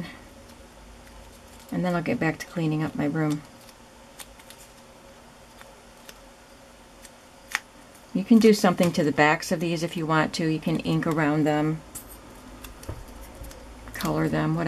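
Paper rustles softly.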